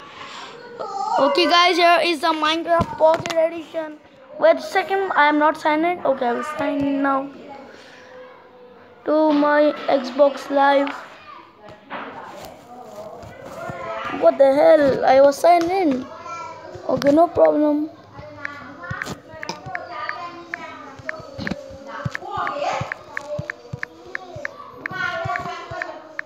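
A boy talks with animation close to a phone microphone.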